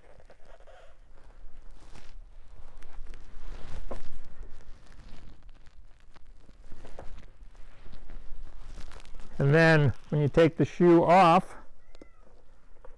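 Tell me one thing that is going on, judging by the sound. Hands rub and scrape at a rubber shoe sole.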